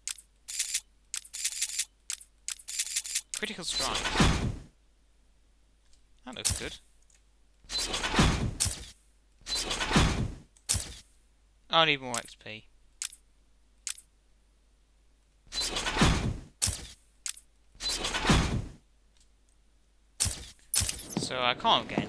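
Menu sounds whoosh and click as selections change.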